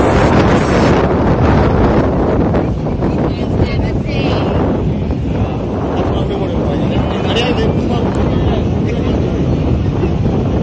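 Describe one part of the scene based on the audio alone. Wind blows loudly outdoors.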